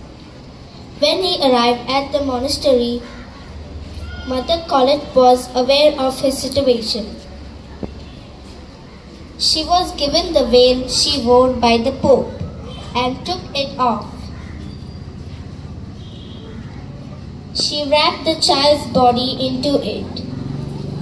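A young girl speaks clearly into a microphone, with pauses between phrases.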